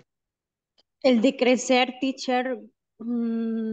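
A woman speaks clearly over an online call.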